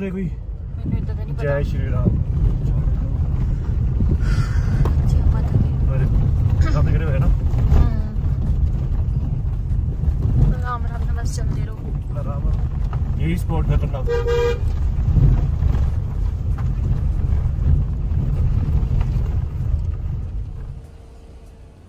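A car rumbles steadily as it drives slowly over a rough, stony road.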